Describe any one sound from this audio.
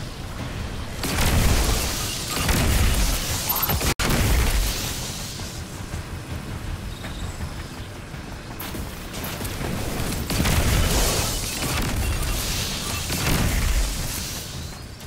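A weapon fires with loud booms.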